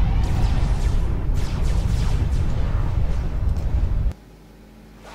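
Video game battle noise rumbles with rapid explosions and gunfire, then cuts off abruptly.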